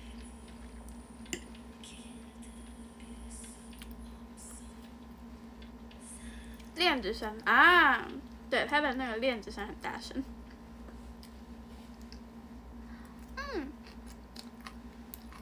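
A young woman chews food softly.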